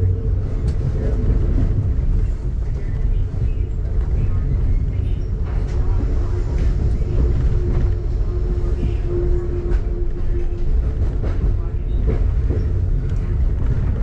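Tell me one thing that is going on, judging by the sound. Rain patters on a car's windscreen.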